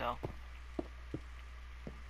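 A block breaks with a short crunching sound.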